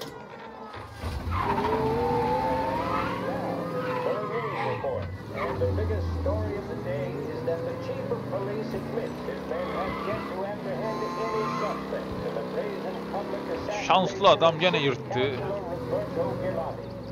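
A car engine hums and revs as a car drives along.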